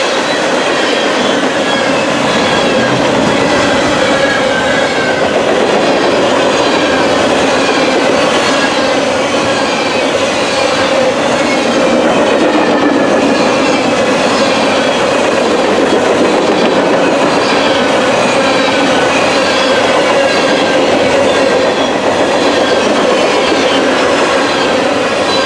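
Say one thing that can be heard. Steel wheels squeal and clatter on the rails.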